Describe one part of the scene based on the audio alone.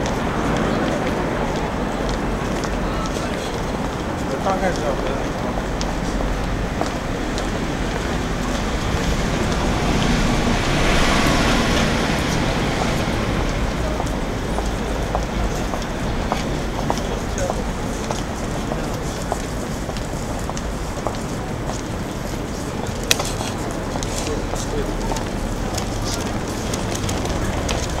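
Passersby's footsteps patter on pavement close by.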